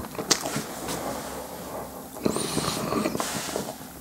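A young man gasps and breathes out hard.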